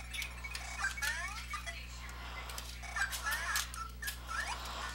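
Short rising electronic chirps sound as a game character jumps.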